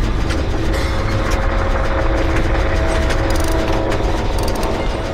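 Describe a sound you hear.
A low engine hum drones throughout.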